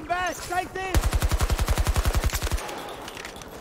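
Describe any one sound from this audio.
A rifle fires rapid automatic bursts at close range.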